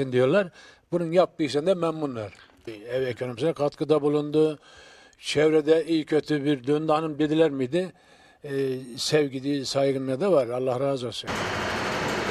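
A middle-aged man speaks calmly into a microphone close by.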